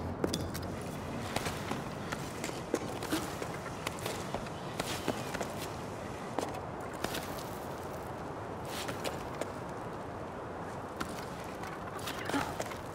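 Hands grip and scrape on rock.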